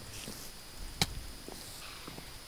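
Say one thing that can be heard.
A sword strikes a creature with a sharp hit.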